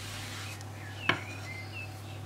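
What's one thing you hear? A wooden rolling pin is set down on a hard surface with a sharp knock.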